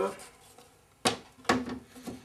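A metal side panel knocks and clicks into place on a computer case.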